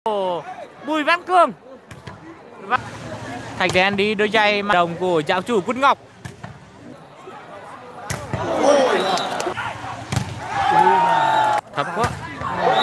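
A crowd cheers and shouts in a large outdoor space.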